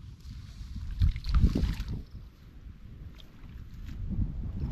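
Footsteps crunch and squelch through dry stubble and mud.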